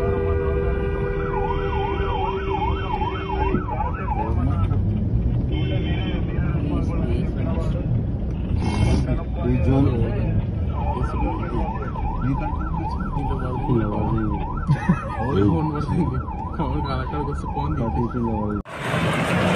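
A police siren wails in rising and falling bursts just ahead.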